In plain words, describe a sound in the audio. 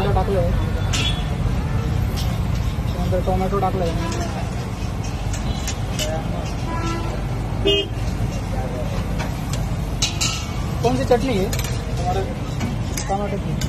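A busy crowd murmurs and chatters in the background.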